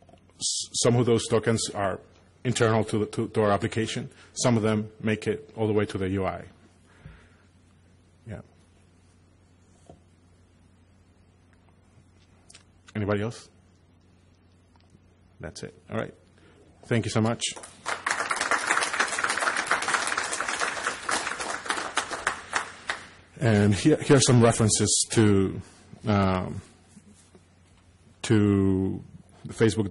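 A man speaks calmly through a microphone, pausing between phrases.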